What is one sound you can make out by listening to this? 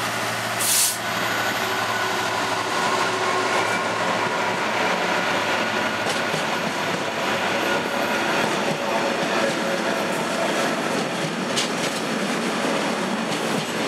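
A long freight train's wagons rattle and clatter over the rails.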